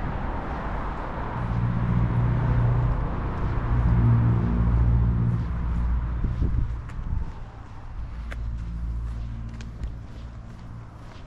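A car drives along a quiet street and its engine hums.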